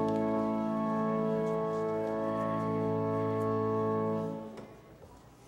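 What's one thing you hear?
An organ holds a steady chord in a large echoing hall, then stops.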